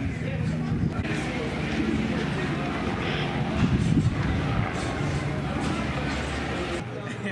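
A crowd of adults murmurs and chats nearby.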